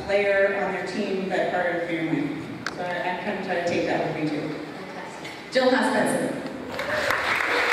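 A woman speaks into a microphone over loudspeakers in a large echoing hall.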